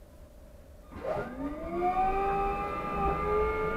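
A bus motor whines, rising in pitch as the bus pulls away.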